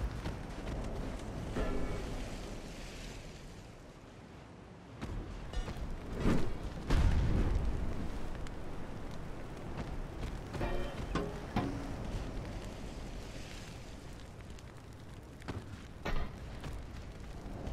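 Sea waves wash steadily.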